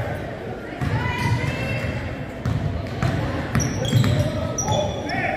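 A basketball bounces with hollow thumps on a wooden floor in a large echoing gym.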